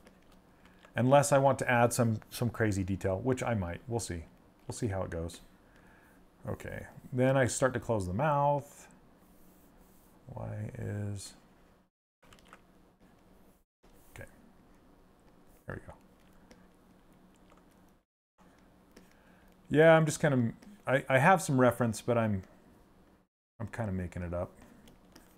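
A middle-aged man talks calmly and casually into a close microphone, with pauses.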